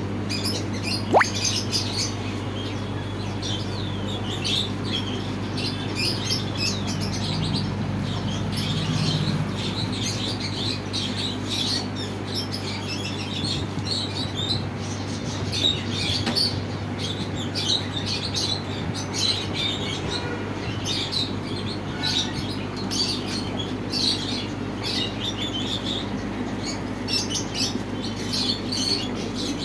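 Water bubbles and gurgles steadily from aquarium air pumps.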